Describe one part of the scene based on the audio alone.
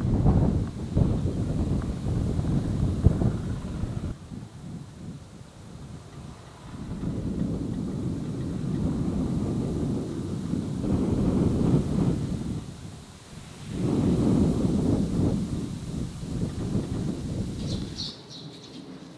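Wind rustles through tall grain stalks.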